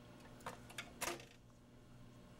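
A record drops onto a turntable with a soft clack.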